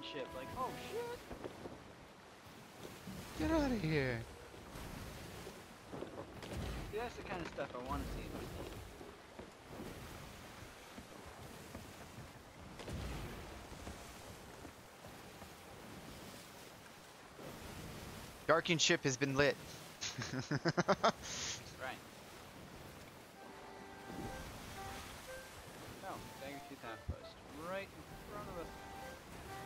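Stormy sea waves crash and churn.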